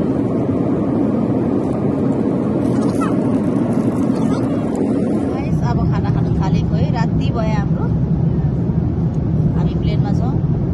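A steady, low engine roar fills an airplane cabin.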